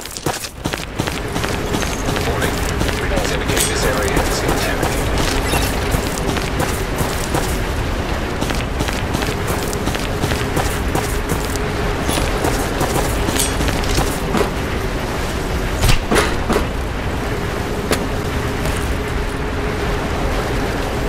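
Wind blows steadily with a low roar.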